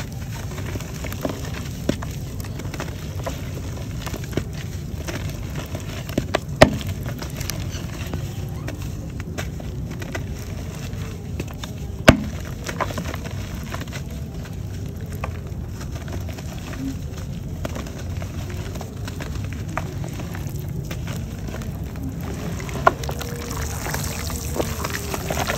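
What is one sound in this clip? Chunks of chalk crumble and crack in wet hands.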